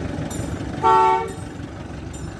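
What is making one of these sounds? A small diesel locomotive sounds a short horn blast.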